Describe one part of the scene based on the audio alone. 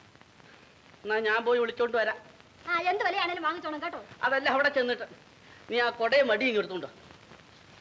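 A middle-aged man answers in a raised, agitated voice.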